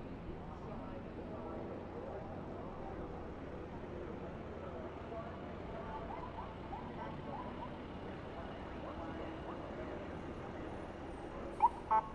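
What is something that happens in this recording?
A race car engine roars steadily from inside the cockpit.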